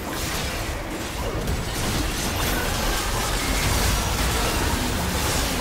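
Blasts and impacts thud heavily.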